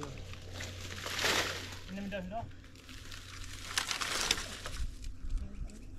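Dry reed stalks rustle and clatter as they are stacked.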